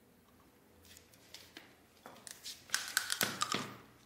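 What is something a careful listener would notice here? A plate clatters as it is set down.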